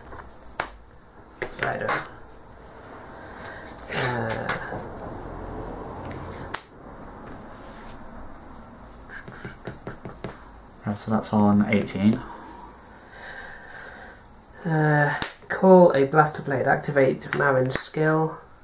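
Playing cards riffle and slap as they are shuffled by hand.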